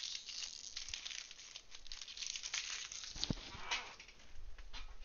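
A foil pack crinkles and tears as it is opened.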